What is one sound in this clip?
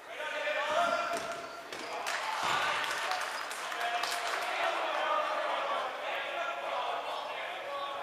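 Basketballs bounce on a hard wooden floor.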